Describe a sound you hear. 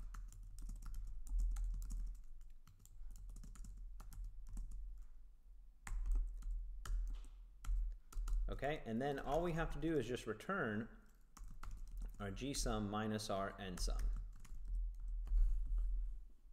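Keyboard keys click quickly and unevenly as someone types.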